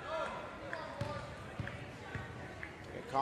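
A basketball bounces on a hard floor in an echoing gym.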